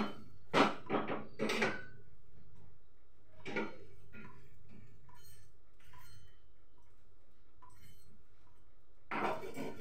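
A spatula scrapes and clatters against a frying pan.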